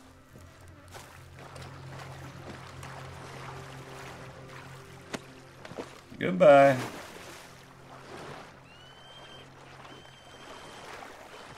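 Water splashes as someone wades through a river.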